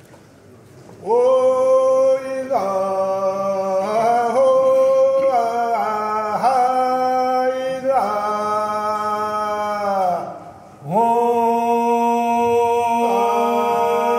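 A choir of men sings together in close harmony in a large echoing hall.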